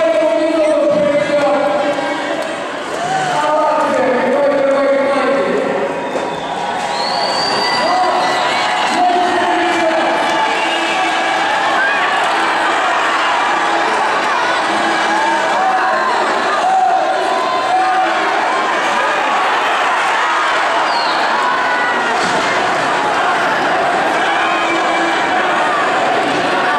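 A large crowd chants and cheers loudly in an echoing arena.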